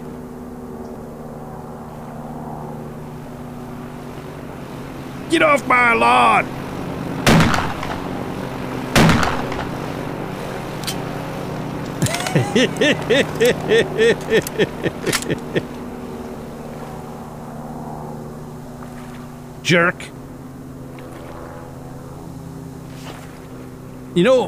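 A propeller plane drones steadily overhead.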